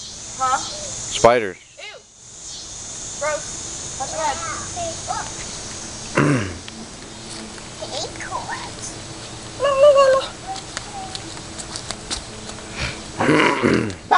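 Young children babble and squeal nearby.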